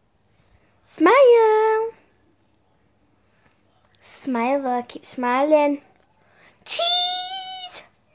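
A young girl talks and exclaims animatedly close to the microphone.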